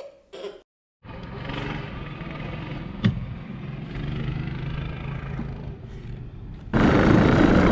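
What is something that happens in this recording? A toy car's electric motor hums steadily.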